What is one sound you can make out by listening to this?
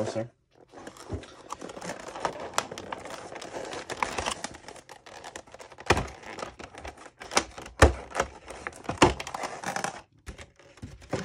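A plastic tray crackles and clicks as it is handled.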